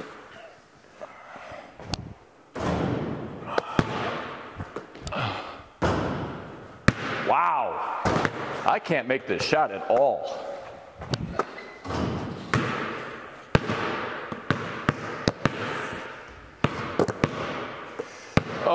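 Basketballs bounce with sharp thuds on a hard floor in a large echoing hall.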